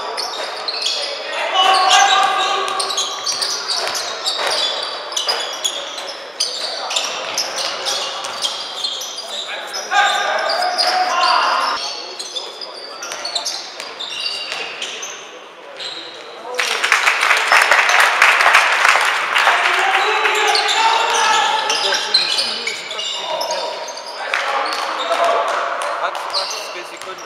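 Basketball shoes squeak on a sports hall floor in a large echoing hall.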